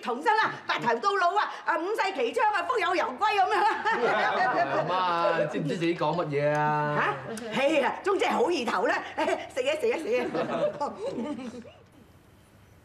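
A middle-aged woman talks and laughs with animation.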